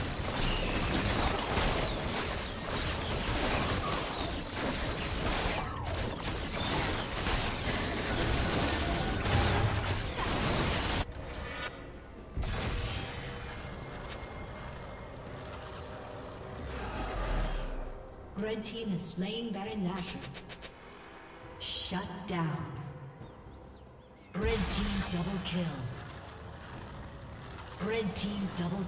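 Video game battle effects clash, crackle and boom.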